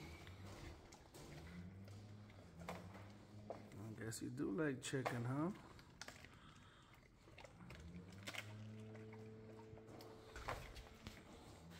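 A dog chews and laps up food.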